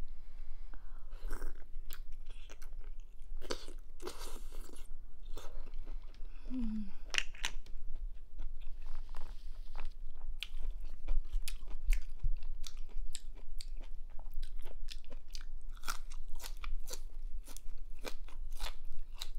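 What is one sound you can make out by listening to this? A woman chews and slurps food with wet mouth sounds close to a microphone.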